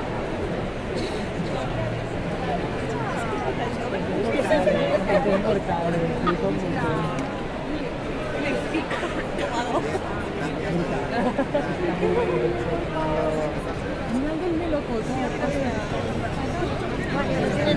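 A crowd of people chatter all around in a busy indoor hall.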